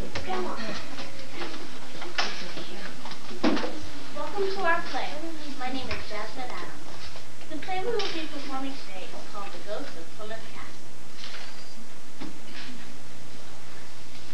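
A young girl speaks with animation.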